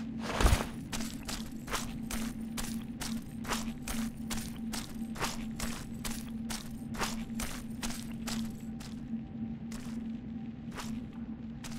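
Footsteps thud steadily on a stone floor.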